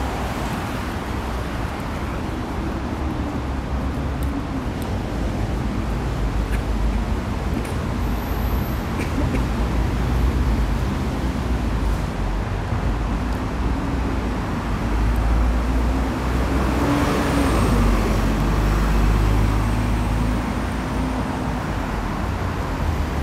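City traffic hums steadily nearby.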